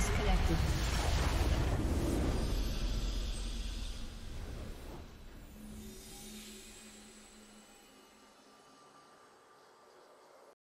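A game's victory fanfare booms and slowly fades.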